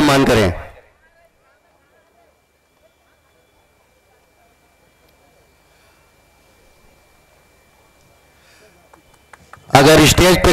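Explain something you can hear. A crowd of men and women murmurs faintly in the distance.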